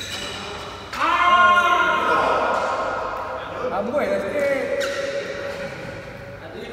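Young men shout and cheer close by in a large echoing hall.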